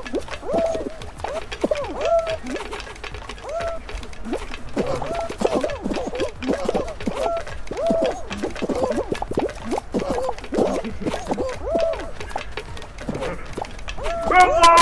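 Cartoon characters squeak and jabber in high, bouncy cries.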